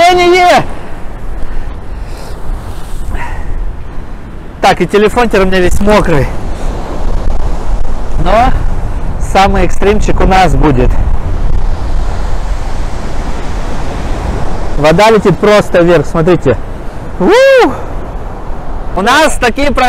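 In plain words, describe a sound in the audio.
Rough sea waves crash and surge against a stone shore.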